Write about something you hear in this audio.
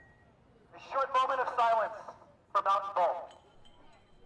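A young man shouts through a megaphone outdoors.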